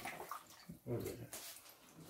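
Tap water runs into a sink.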